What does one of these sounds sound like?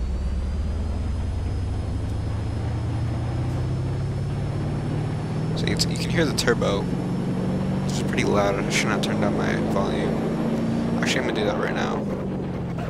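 A car engine hums steadily and slowly rises in pitch as the car speeds up.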